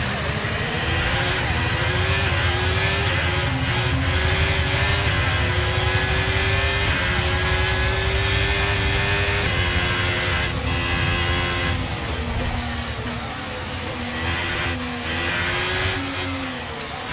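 A racing car engine whines loudly, climbing in pitch and dropping at each gear change.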